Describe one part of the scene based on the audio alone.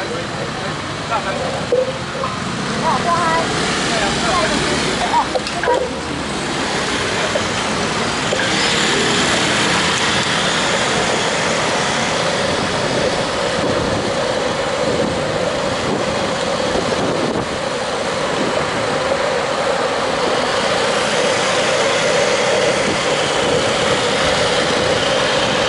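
Wind rushes past a moving bicycle outdoors.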